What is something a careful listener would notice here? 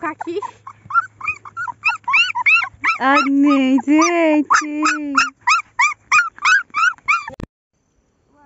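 Puppies whimper and squeal in high, rapid cries close by.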